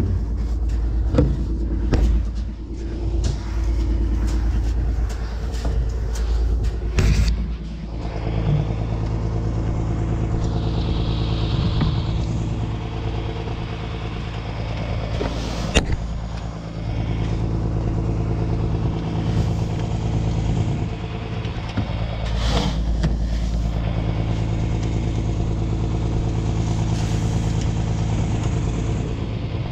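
A tractor engine idles steadily nearby.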